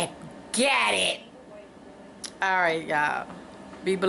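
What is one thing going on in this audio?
A middle-aged woman laughs close to a microphone.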